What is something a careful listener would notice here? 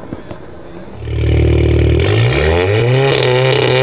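A car engine idles with a deep rumble, then revs up.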